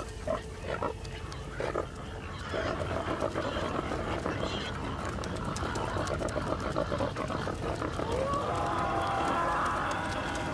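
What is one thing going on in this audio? Pigs grunt and snuffle.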